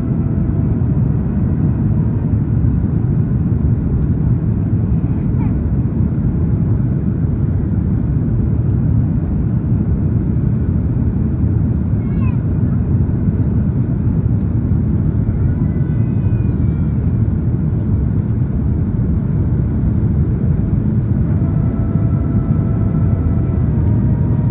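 A jet airliner's engines roar steadily from inside the cabin.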